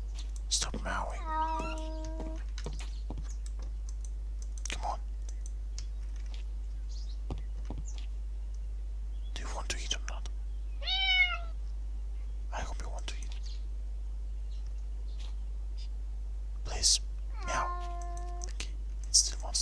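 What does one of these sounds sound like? A cat meows several times.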